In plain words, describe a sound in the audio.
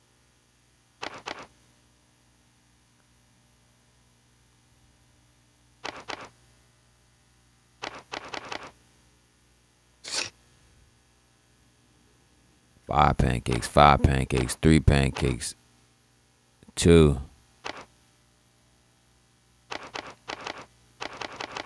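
Short electronic menu blips sound now and then.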